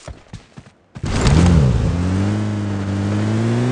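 A vehicle engine starts up and runs with a steady hum.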